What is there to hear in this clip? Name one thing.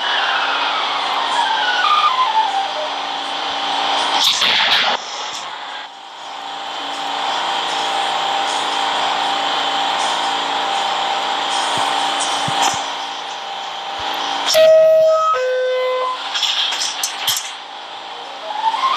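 A subway train hums and rumbles steadily.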